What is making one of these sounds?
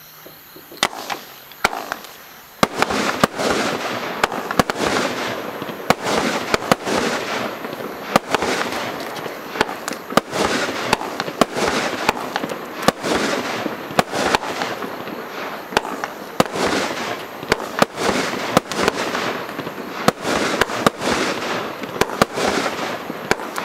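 Fireworks burst with sharp bangs, one after another.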